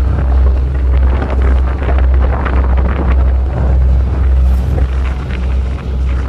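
Waves splash against a ship's hull.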